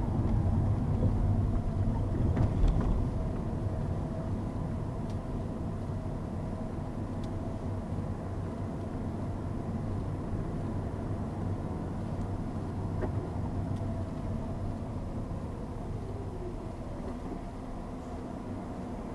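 A car engine hums steadily from inside the cabin as the car drives.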